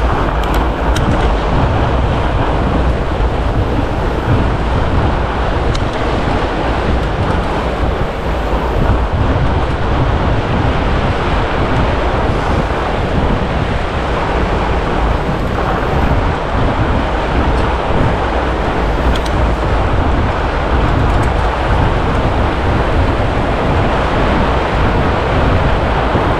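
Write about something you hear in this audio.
Fat bike tyres crunch and roll over packed snow.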